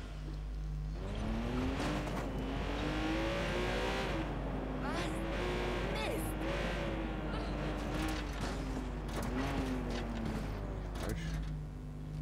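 A car engine revs, rising and falling in pitch as the car drives off.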